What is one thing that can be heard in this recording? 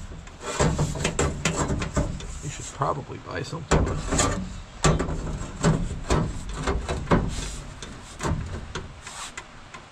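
A door panel knocks and scrapes against a door.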